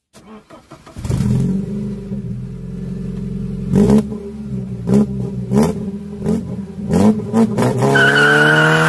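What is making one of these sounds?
A car engine idles with a low, steady rumble close by.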